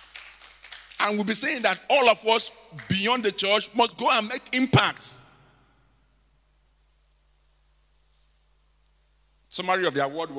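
A man preaches with animation through a microphone, his voice ringing out in a large hall.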